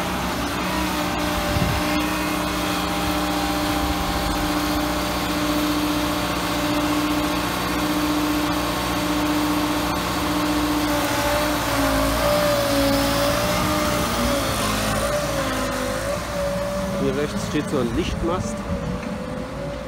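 A portable generator drones steadily close by.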